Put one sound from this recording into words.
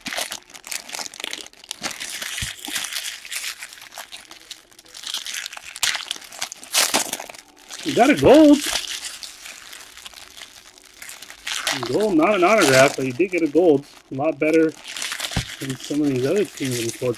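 Plastic wrappers crinkle and rustle as hands tear open card packs.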